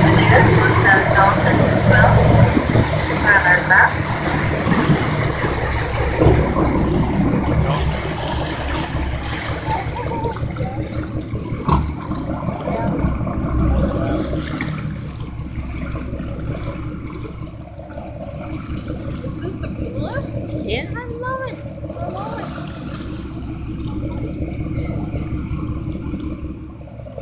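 Wind blows across the open sea.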